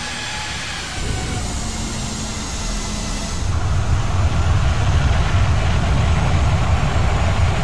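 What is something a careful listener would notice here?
Aircraft tyres thump onto a runway and rumble.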